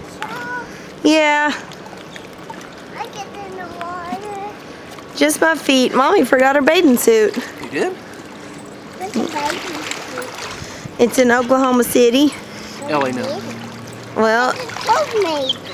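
A small child babbles and squeals.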